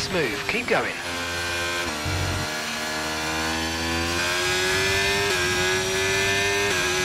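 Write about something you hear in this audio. A racing car engine climbs in pitch as it speeds up again.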